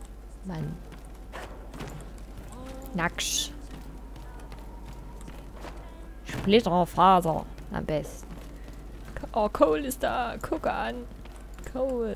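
Footsteps thud on wooden floorboards and stairs.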